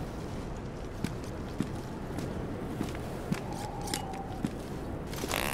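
Heavy boots thud on the ground in footsteps.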